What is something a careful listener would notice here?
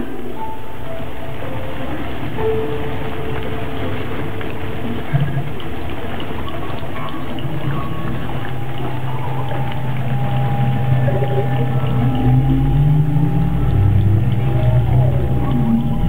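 Loud music plays over loudspeakers.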